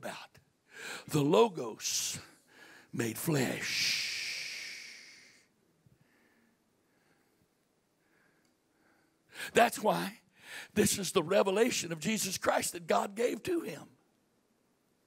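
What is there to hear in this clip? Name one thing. A middle-aged man speaks with animation into a microphone through loudspeakers.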